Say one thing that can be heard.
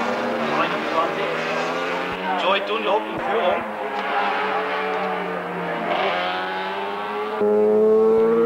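A racing motorcycle engine roars past at high revs.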